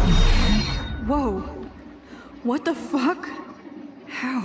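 A young woman exclaims in surprise.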